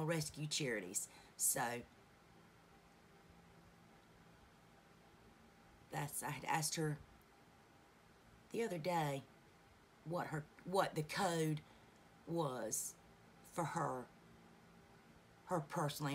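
A woman talks calmly and close by, in short bursts with pauses.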